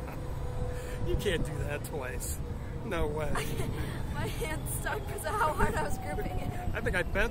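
A girl laughs and squeals close by.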